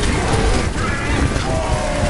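A fiery blast roars close by.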